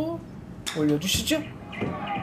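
A golf club sharply strikes a ball.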